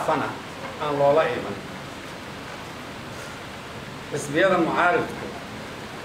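An elderly man speaks calmly into microphones, in short phrases with pauses.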